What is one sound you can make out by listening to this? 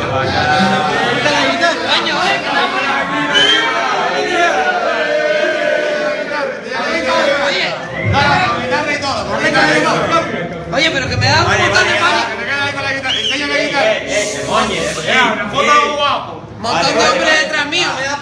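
Men laugh and cheer.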